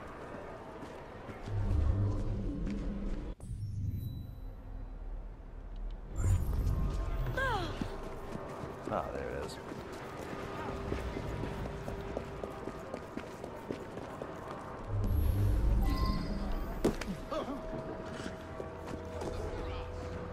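Footsteps patter on cobblestones.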